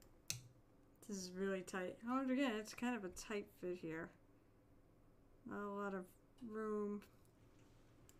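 A young woman talks calmly into a microphone, close by.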